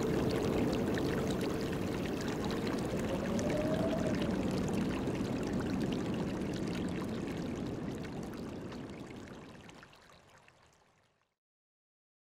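An acoustic guitar is strummed close by and slowly fades away.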